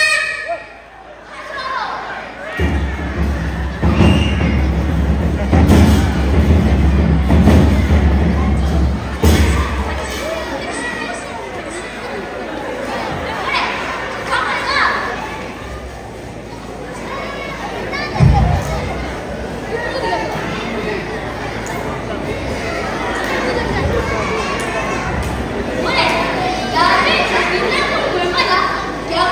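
A group of children sing together in an echoing hall.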